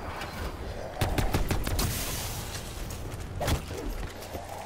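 A weapon fires with sharp crackling bursts.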